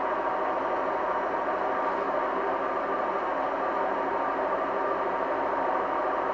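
Liquid pours and splashes into a cup.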